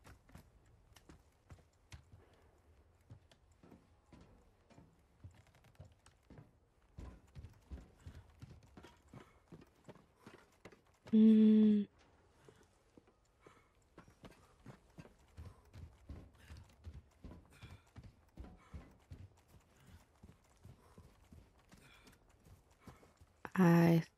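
Footsteps crunch and thud steadily on wood, tile and dirt.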